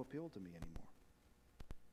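A man speaks calmly into a microphone in a large echoing room.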